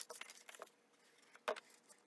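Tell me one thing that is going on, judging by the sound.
A glue bottle squeaks as it is squeezed.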